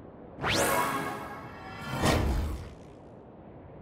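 A bright swooshing chime rings out twice.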